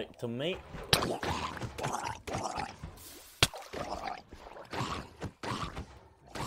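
A sword strikes with sharp thwacks.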